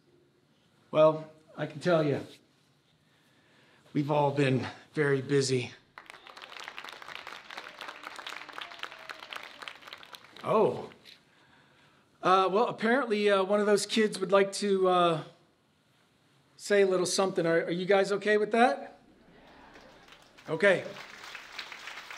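A middle-aged man speaks warmly to an audience.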